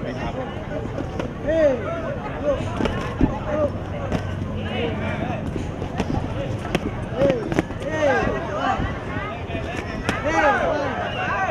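A crowd shouts and cheers around an outdoor arena.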